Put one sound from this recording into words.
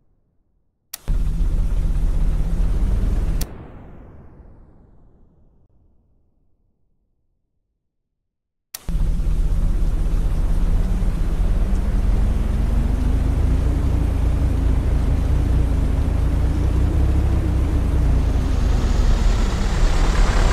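A tornado's wind roars loudly and steadily.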